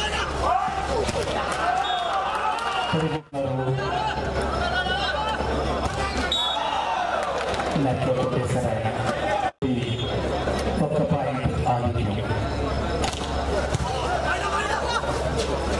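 A large crowd cheers and shouts in a big open space.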